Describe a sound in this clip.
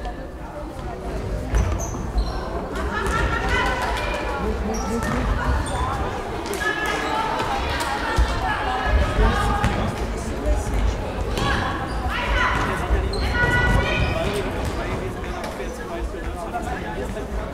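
Young girls shout and call out across a large echoing hall.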